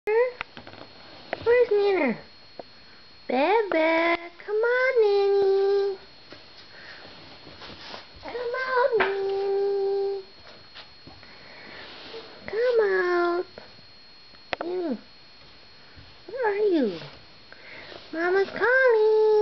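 A baby whimpers and cries in short, rising and falling bursts close by.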